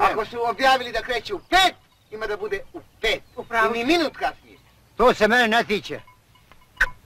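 A middle-aged man speaks loudly and firmly nearby.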